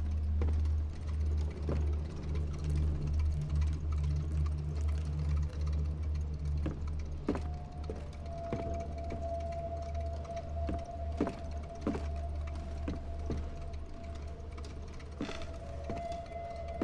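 Footsteps thud on a creaky wooden floor.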